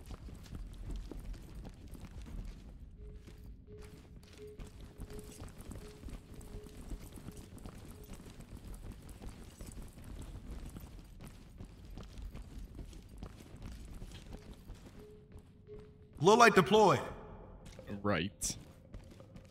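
Footsteps tread softly across a hard floor.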